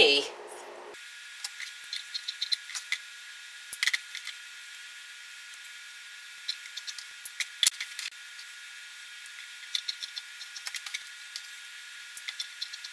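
Scissors snip through fabric.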